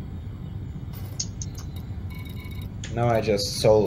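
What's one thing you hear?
Short electronic interface beeps sound as menu items are selected.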